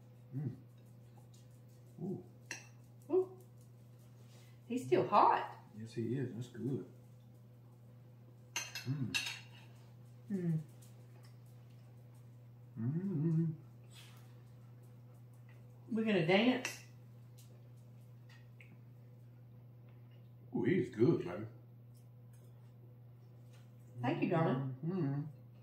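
A fork clinks on a plate.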